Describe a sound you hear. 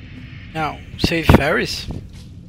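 A sword swings and strikes with sharp metallic hits.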